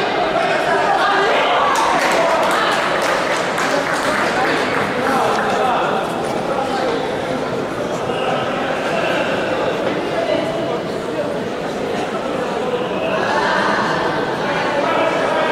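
A crowd of spectators cheers and shouts in a large echoing hall.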